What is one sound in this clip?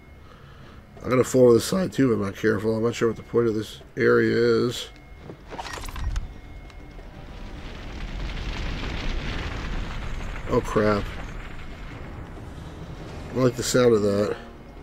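A middle-aged man talks with animation close to a microphone.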